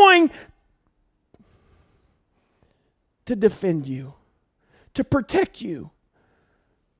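A middle-aged man speaks calmly into a headset microphone, in short phrases with pauses.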